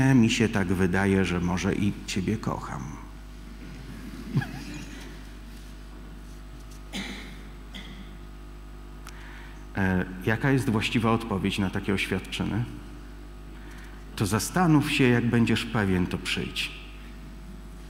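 A middle-aged man speaks calmly to an audience through a microphone, in bursts with pauses.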